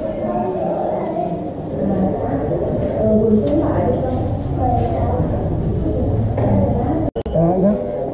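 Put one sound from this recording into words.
A crowd of people chatters indoors.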